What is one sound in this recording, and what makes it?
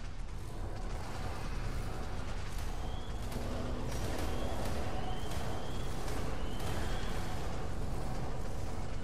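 Creatures snarl and thrash in a fight.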